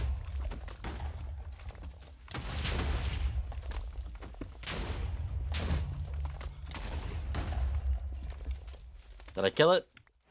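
Explosions boom with a deep, continuous rumble.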